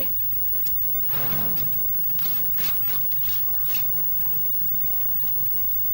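Fabric rustles under a woman's hands.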